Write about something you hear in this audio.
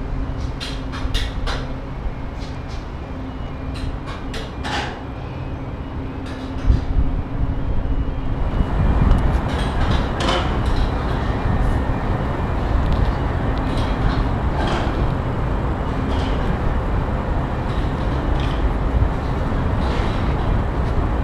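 Shoes clank on metal beams.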